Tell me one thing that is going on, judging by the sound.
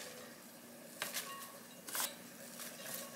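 Shredded cabbage rustles and crunches as it drops into a glass bowl.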